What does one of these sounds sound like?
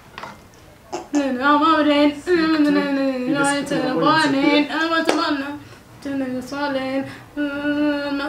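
A young woman sings loudly and close by.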